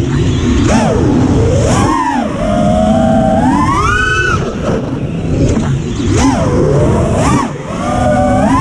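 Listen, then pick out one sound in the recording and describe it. Wind rushes past the drone in a low roar.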